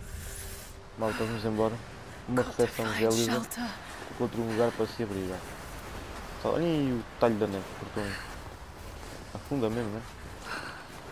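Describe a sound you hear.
A young woman speaks to herself in a strained, shivering voice.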